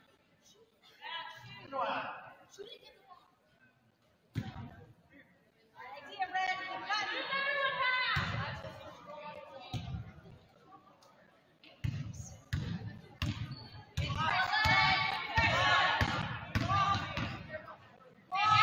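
Young women shout and call out to each other across an echoing gym.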